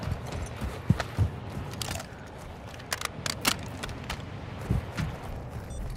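A rifle clicks and rattles as it is reloaded.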